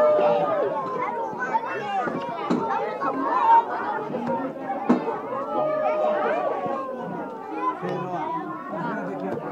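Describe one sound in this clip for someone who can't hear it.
A group of adults and children sing together close by.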